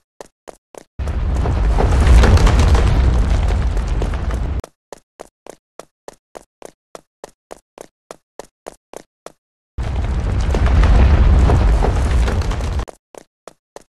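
A heavy boulder rolls by with a deep rumble.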